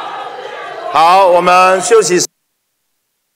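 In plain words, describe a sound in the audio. A man speaks loudly through a microphone and loudspeakers.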